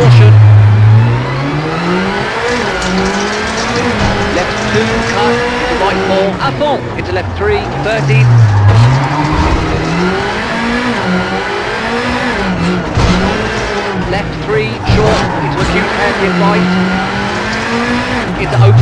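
A rally car engine revs up and down as the car shifts gears.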